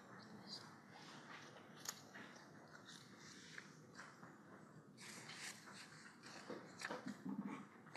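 Plastic sheeting rustles and crinkles close by.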